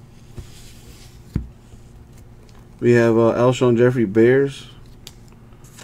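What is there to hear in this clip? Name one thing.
Trading cards tap and rustle in someone's hands.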